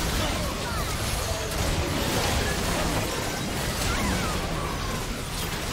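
Game spell effects crash and whoosh in a busy fight.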